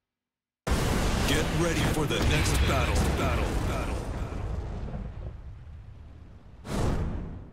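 A fiery blast roars and slowly dies away.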